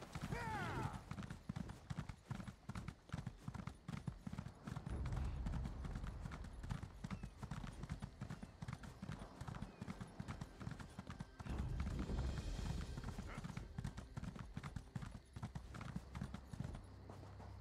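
A horse gallops with rapid hoofbeats on hard ground.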